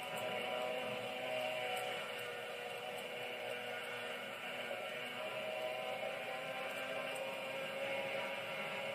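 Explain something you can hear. A racing car engine roars steadily at high speed through a small speaker.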